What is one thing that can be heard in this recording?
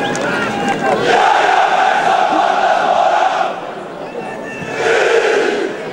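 Many fans cheer and shout across a large open stadium.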